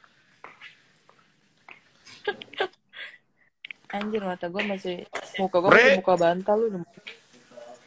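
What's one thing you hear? A young woman talks and laughs over an online call.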